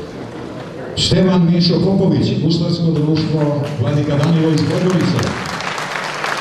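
A man speaks into a microphone through loudspeakers in a large hall.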